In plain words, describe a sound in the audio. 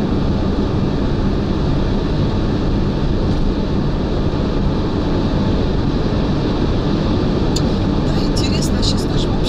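A man talks inside the car.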